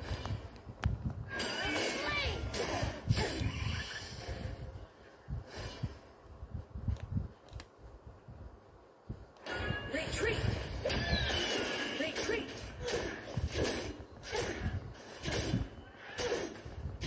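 Game spell effects whoosh and crash in a fight.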